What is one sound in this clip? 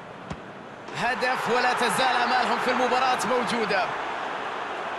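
A large crowd roars and cheers loudly.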